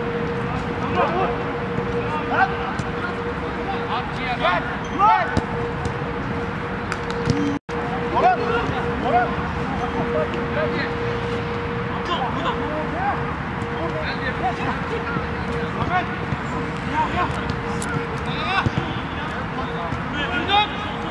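Men shout and call out to each other across an open outdoor field.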